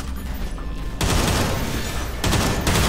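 A grenade explodes nearby with a loud blast.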